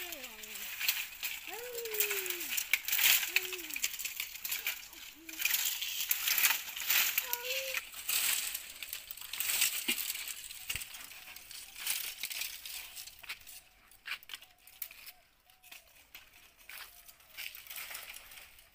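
Dry branches snap and rustle as they are broken and gathered.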